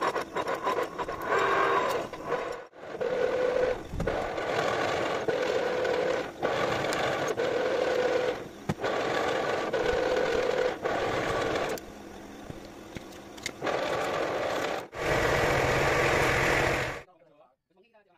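A metal tap grinds as it cuts into metal.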